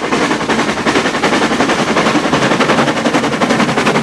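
Steam hisses from a locomotive's cylinders.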